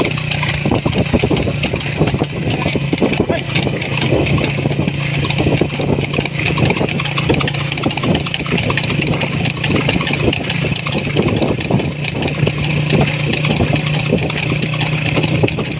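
A cart's wheels rumble and rattle along the road.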